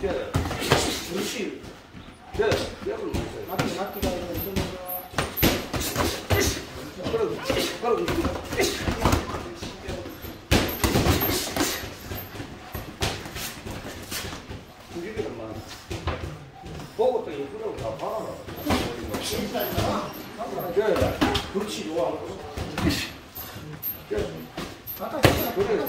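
Boxing gloves thump against each other in quick bursts.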